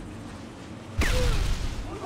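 A bullet cracks and strikes a stone wall nearby.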